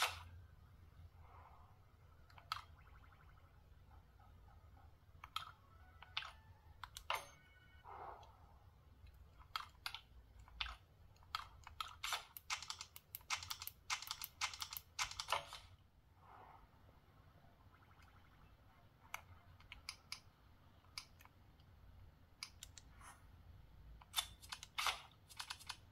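Buttons on a handheld game console click under thumb presses.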